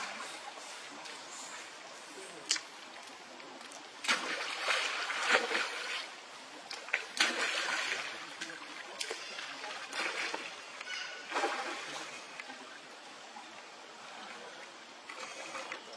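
Water splashes and laps as monkeys move about in a pool.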